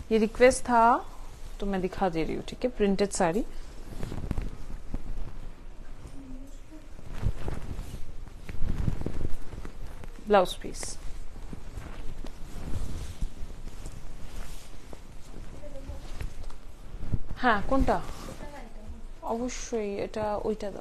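Silk fabric rustles as it is unfolded and draped.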